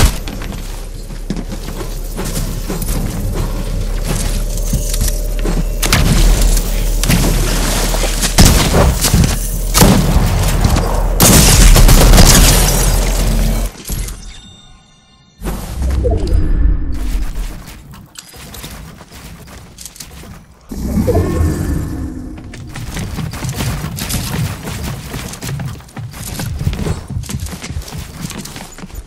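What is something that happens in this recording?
Wooden building pieces snap into place with quick clattering knocks.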